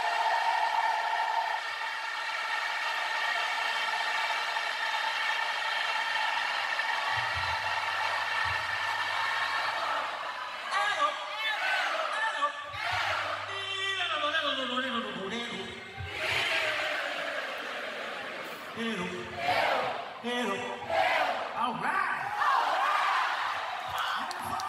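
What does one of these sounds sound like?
A man sings loudly through a microphone over loudspeakers.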